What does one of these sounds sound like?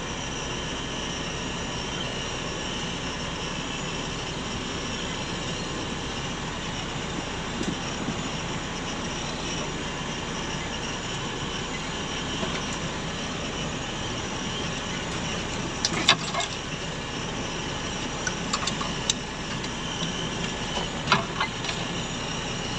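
Mud splashes against a windshield.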